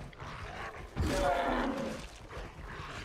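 A wild boar grunts and snorts nearby.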